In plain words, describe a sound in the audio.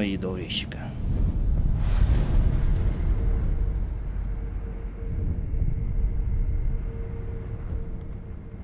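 A magical shimmer swells into a low, steady hum.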